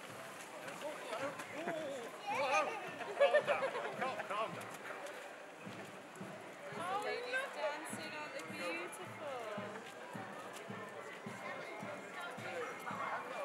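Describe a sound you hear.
A group of girls and young women sing and shout together.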